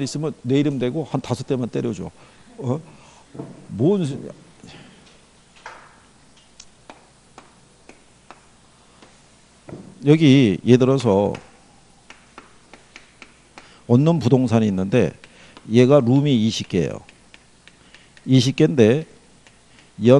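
A middle-aged man lectures in bursts through a clip-on microphone, with pauses between phrases.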